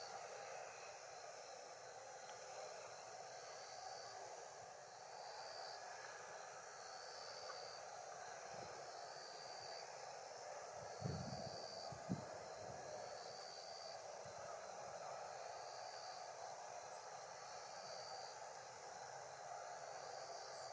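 Jet engines idle with a steady distant roar.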